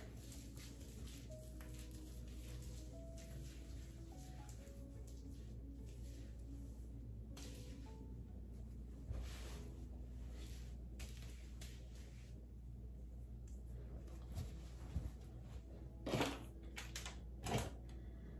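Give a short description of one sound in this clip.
A towel rubs against hair.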